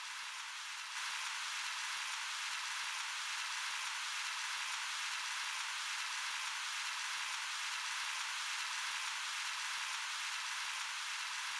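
Water rushes down steadily with a soft hiss.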